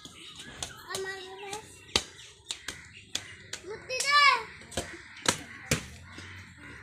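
A boy kicks a plastic ball with sharp thuds.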